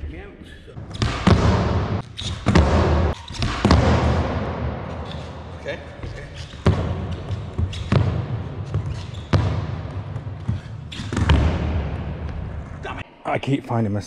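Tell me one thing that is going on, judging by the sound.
Skateboard wheels roll and rumble on a hard floor in an echoing hall.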